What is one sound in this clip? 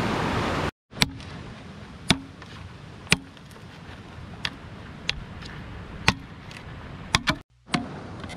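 A length of bamboo knocks sharply against stones.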